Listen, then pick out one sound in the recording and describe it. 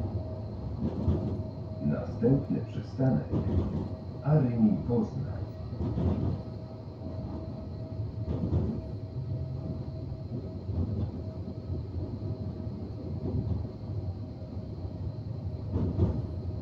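A tram rumbles steadily along its tracks.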